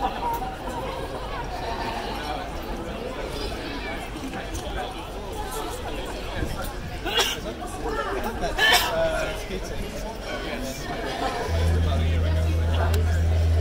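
A group of singers sings together outdoors, heard from a distance.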